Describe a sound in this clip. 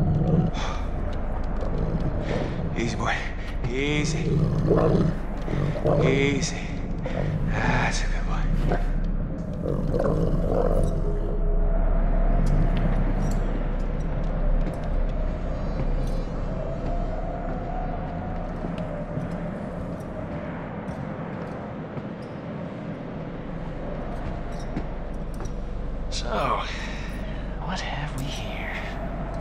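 A young man speaks softly and calmly.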